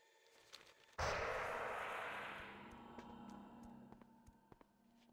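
A magical whoosh swells and slowly fades.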